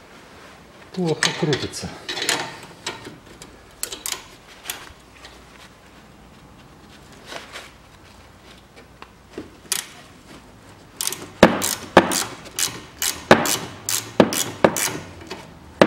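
Metal wrenches clink and clatter against a bolt.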